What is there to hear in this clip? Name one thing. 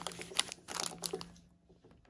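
Plastic snack wrappers rustle under a hand.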